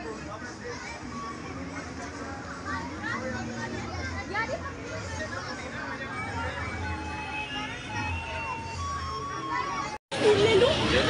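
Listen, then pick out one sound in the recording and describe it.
A crowd of children chatters outdoors.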